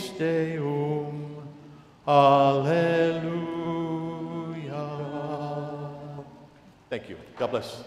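A man sings a slow chant in a large echoing hall.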